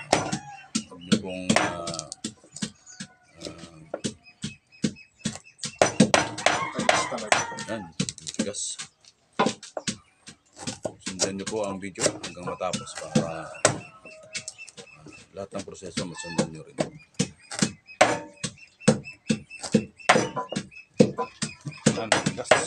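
A knife chops quickly against a wooden board.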